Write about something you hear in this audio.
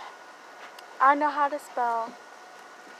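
A young girl speaks loudly and playfully close by.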